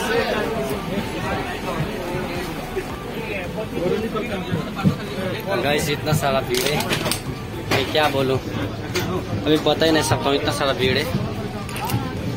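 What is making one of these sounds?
Many men talk and chatter close by in a crowd.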